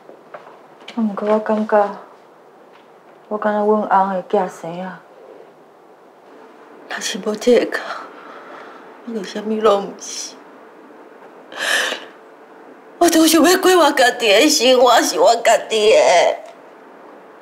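A woman speaks in a sad, tearful voice.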